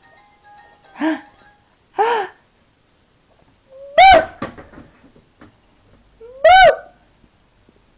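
A toddler squeals loudly in short, high bursts.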